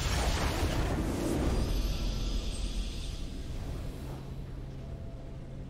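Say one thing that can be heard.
A triumphant fanfare rings out and slowly fades.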